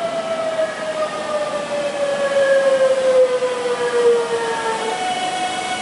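An electric train pulls in, its motors whining lower and lower as it slows.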